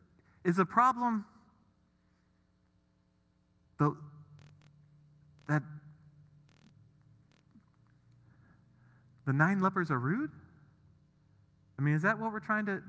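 A man speaks with animation through a microphone, pausing between phrases.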